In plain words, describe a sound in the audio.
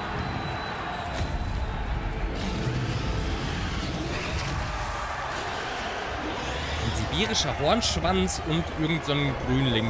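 Dragons roar and crash as they fight.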